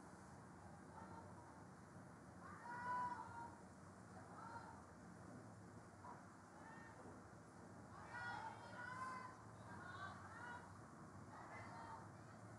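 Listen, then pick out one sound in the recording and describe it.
Young women shout and call out across an open field.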